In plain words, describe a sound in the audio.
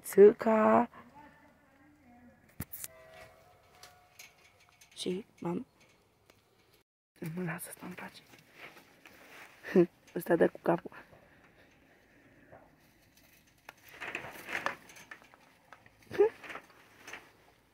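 A goat munches and rustles through dry straw.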